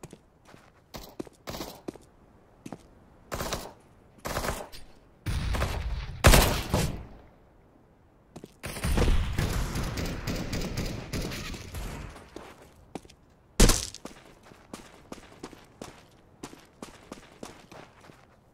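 Footsteps tap quickly on hard stone.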